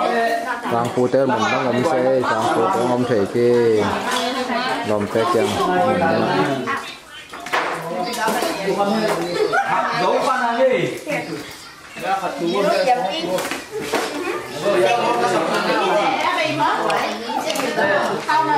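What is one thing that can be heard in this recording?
Several women and men talk and chatter nearby.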